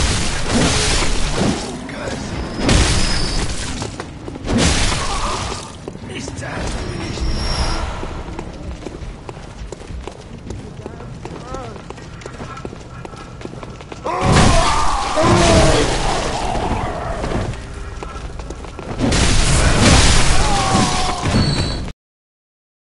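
Blades slash and thud in a close fight, in loud bursts.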